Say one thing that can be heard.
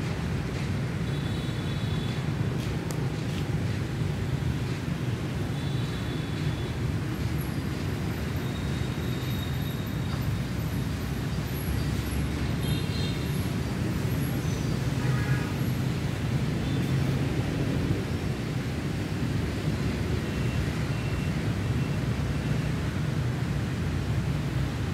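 Wind gusts and rumbles against the microphone.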